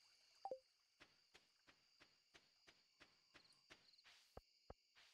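Footsteps tap along at a quick, steady pace.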